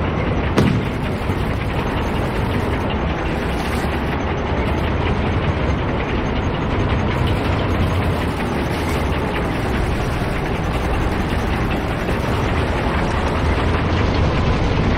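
A tank engine rumbles steadily and deeply.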